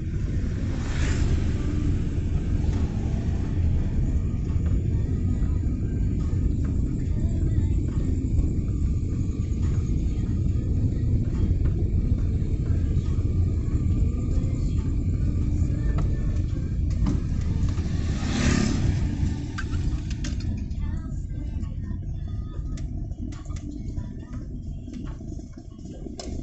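A car engine rumbles low and steady from inside the car as it drives.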